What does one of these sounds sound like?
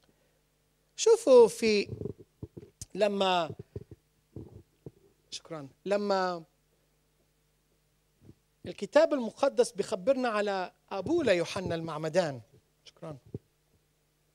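A man preaches with animation into a microphone, heard through loudspeakers in an echoing hall.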